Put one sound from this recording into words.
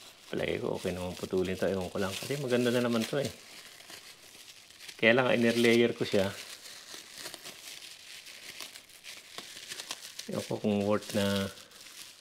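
A plastic bag crinkles softly as hands handle a plant's root ball.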